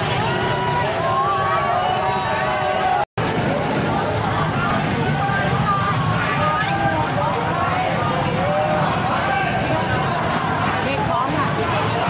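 A large crowd of young people shouts and chants outdoors.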